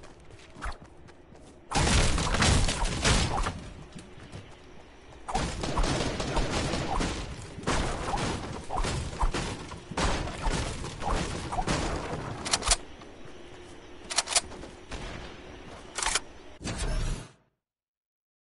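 Game sound effects of weapons swinging and impacts play loudly.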